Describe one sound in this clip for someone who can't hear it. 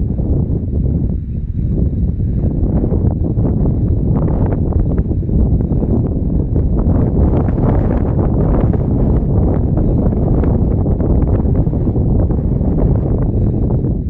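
Wind blows steadily across open ground, rumbling against the microphone.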